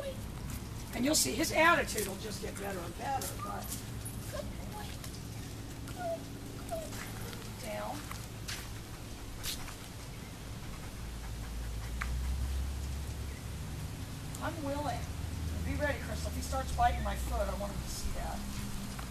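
A young woman talks to a dog in a bright, encouraging voice, outdoors.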